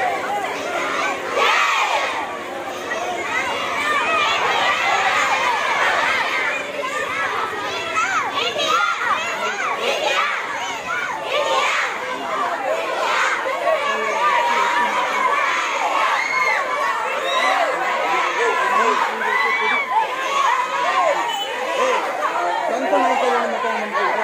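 A crowd of young girls chants and cheers loudly outdoors.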